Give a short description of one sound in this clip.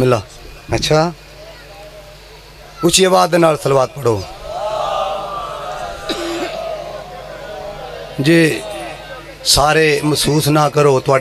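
A man recites loudly and with feeling into a microphone, heard through loudspeakers.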